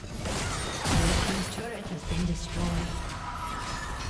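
A tower crumbles with a loud crash.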